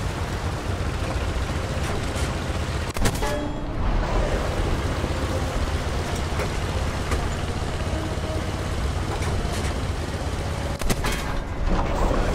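A heavy engine rumbles steadily and low throughout.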